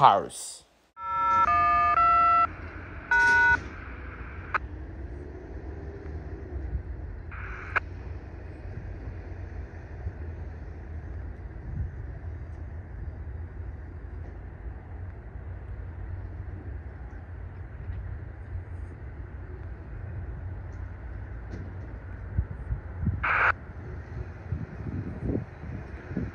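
A freight train rumbles steadily in the distance.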